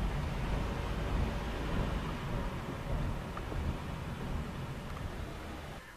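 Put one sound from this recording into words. A car hums and rumbles low and steady while driving.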